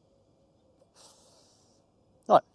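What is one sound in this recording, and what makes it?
A man exhales a soft puff of breath close to a microphone.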